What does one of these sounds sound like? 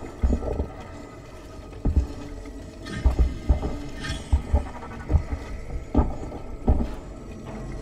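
Heavy boots thud slowly on rocky ground.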